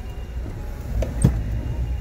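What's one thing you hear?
A car engine idles nearby on a street.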